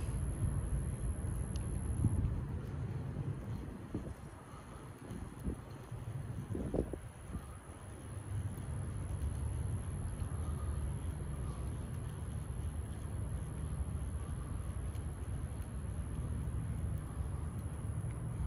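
A fishing reel clicks as line is wound in.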